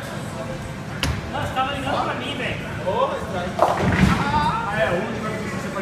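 A bowling ball thuds onto the lane and rolls with a low rumble.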